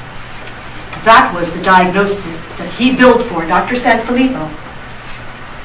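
A woman speaks calmly at a distance through a microphone in a large room.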